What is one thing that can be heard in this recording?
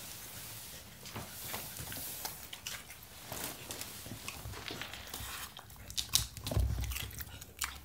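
A bell pepper knocks and thuds on a wooden floor.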